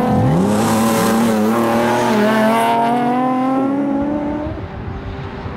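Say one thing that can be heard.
A rally car's engine revs hard as the car speeds past.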